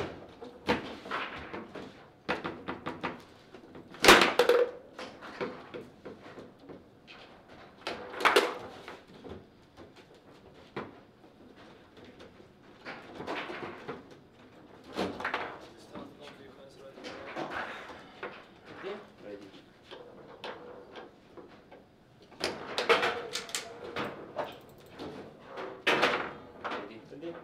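Players spin and slide foosball rods with rattling handles.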